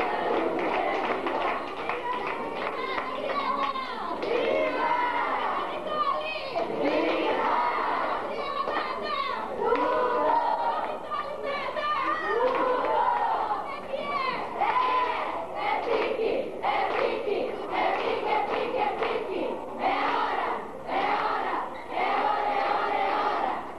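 A group of women and children sing together loudly and close by.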